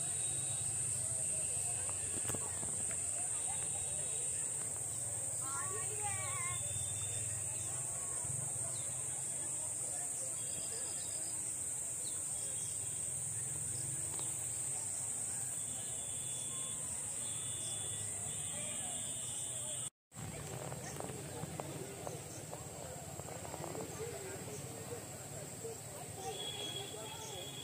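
Wind blows outdoors, rustling through tall grass and leafy plants.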